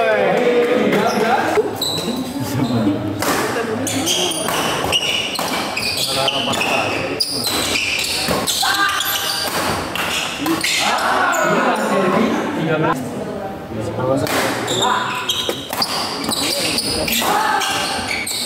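Men talk and call out loudly in a large echoing hall.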